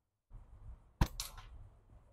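A thrown knife strikes a target with a sharp thud.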